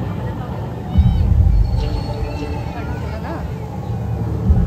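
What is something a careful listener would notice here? Flames whoosh in bursts from jets on the water.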